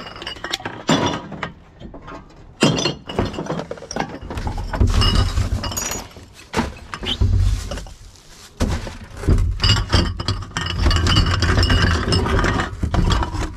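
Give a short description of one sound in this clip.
Glass bottles and cans clink and rattle as they are shifted in a plastic bin.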